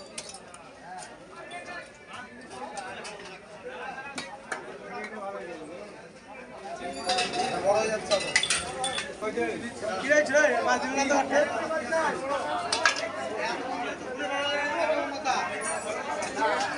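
A crowd of men and women chatter nearby.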